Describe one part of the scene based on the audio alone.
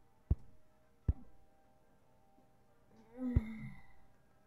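Sharp thuds sound as lobbed objects land in a cartoon game.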